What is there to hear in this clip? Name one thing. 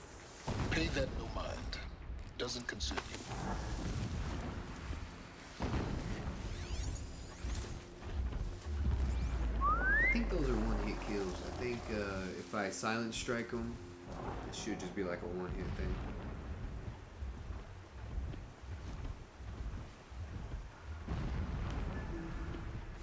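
Tall grass rustles softly as someone creeps through it.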